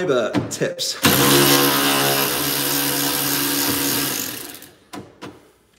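An air ratchet whirs loudly, then winds down.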